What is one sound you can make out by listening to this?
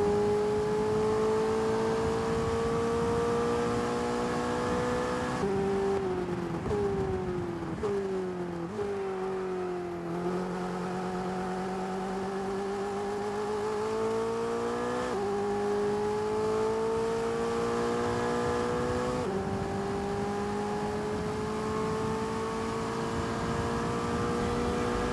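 A racing car engine roars at high revs, dropping in pitch as it shifts down and rising again as it speeds up.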